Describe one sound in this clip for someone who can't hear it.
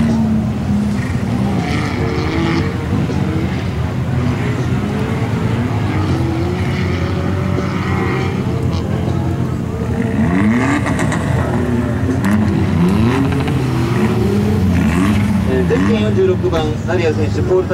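An off-road car engine roars and revs hard.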